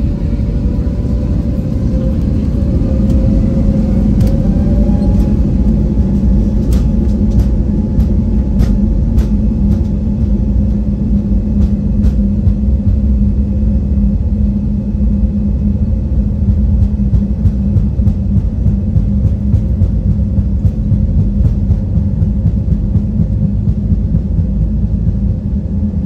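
The wheels of a plane rumble and thud over a runway.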